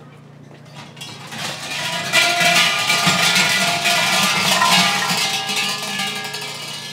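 Large metal bells rattle and jangle loudly.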